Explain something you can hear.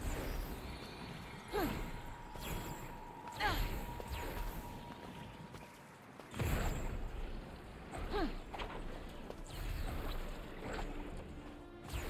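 Footsteps patter quickly over dry grass and rock.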